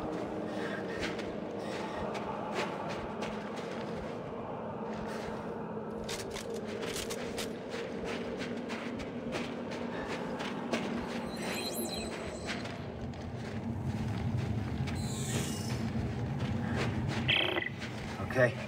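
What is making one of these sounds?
Heavy boots thud on rocky ground in steady footsteps.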